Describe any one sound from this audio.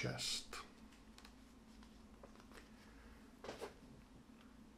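Paper pages rustle as a booklet is leafed through.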